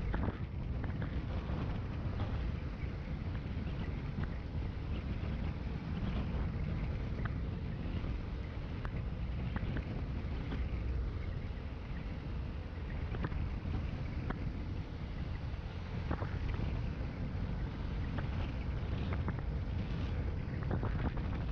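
Wheels roll over asphalt with small rattles and clicks.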